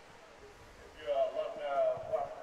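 Young men call out loudly in a huddle close by.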